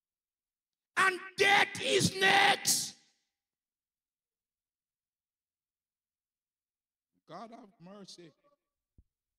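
A man preaches loudly and with animation through a microphone.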